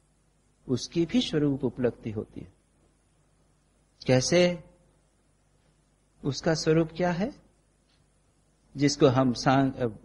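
An elderly man speaks calmly into a microphone in short phrases with pauses.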